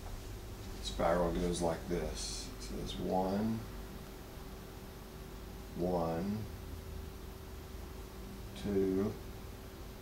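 A man speaks calmly, close by, in short phrases.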